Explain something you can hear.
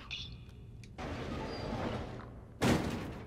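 A cardboard box scrapes across a wooden table.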